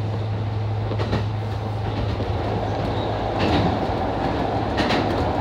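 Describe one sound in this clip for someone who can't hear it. A train rumbles louder as it crosses a steel bridge.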